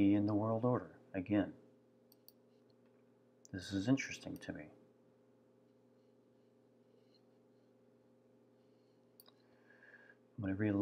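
An older man speaks calmly and close to a microphone, in short bursts.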